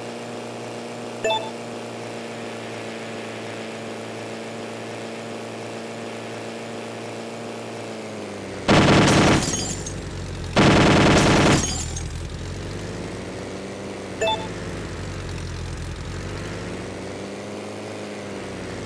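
A small propeller engine drones steadily, its pitch shifting slightly.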